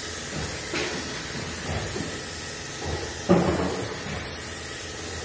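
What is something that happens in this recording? A compressed-air spray gun hisses as it sprays paint.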